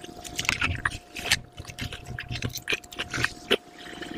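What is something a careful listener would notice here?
Crisp bread tears apart close to a microphone.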